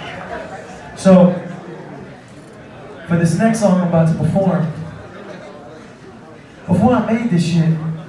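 A man raps through loudspeakers in a large echoing hall.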